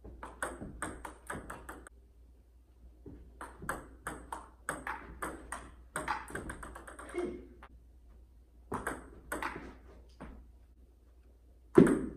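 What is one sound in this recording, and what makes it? A ping-pong ball clicks quickly back and forth off paddles and a table in a room with some echo.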